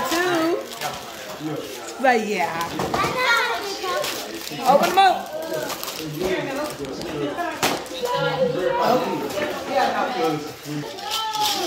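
Wrapping paper rustles as gifts are opened.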